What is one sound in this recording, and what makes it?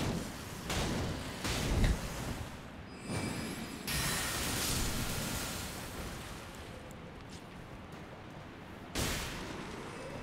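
Sword blows clash and thud.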